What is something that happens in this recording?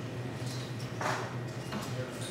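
Darts are pulled out of a dartboard with a soft scrape.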